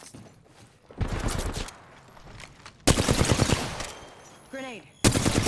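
A rapid-fire gun shoots in short, loud bursts.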